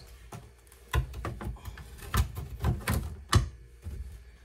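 Items clatter and knock as they are moved about.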